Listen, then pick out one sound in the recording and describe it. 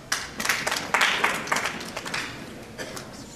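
An audience claps loudly in a large hall, then the applause dies away.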